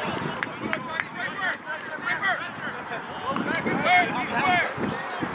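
Young men shout and call out across an open field outdoors.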